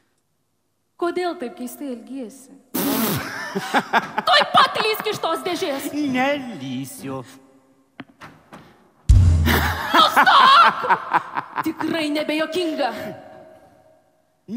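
A young woman sings with animation through a microphone, in a large hall.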